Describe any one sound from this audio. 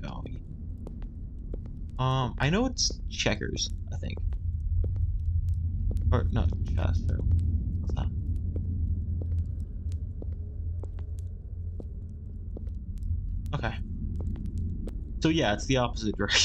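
A torch flame flickers and roars softly.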